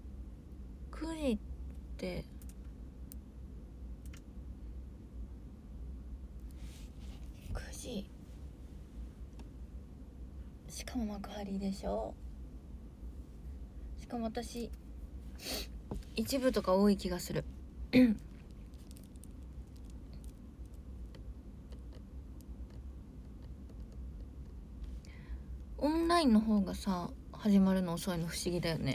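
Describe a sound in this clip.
A young woman speaks casually and close by, in short bursts.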